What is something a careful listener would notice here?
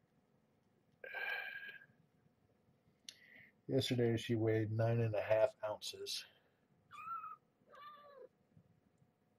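A kitten mews in a high, thin voice.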